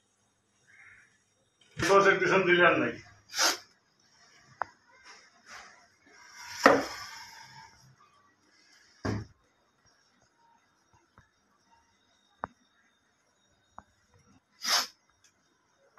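An aerosol can sprays in short hissing bursts.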